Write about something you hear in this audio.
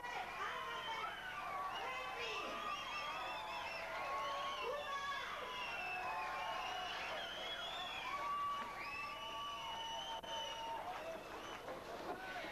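A man speaks into a microphone, heard over loudspeakers outdoors.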